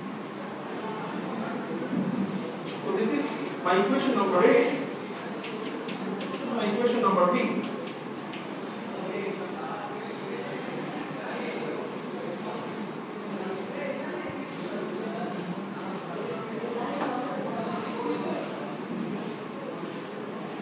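A man lectures aloud in a room with a slight echo.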